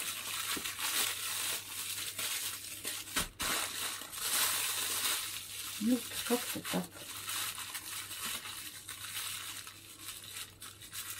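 A thin plastic bag crinkles as hands handle it.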